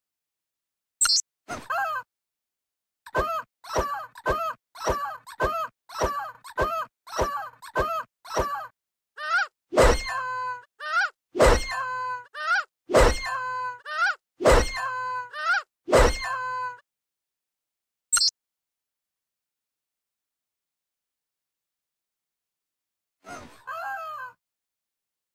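A rubber chicken squeaks again and again in shrill, honking squawks.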